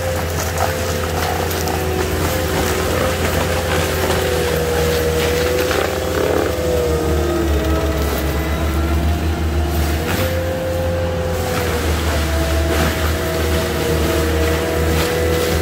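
A tracked machine's diesel engine drones loudly and steadily close by.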